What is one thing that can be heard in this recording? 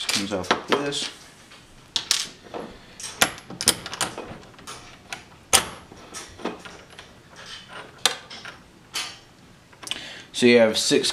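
Small metal parts click and clink as they are fitted together by hand.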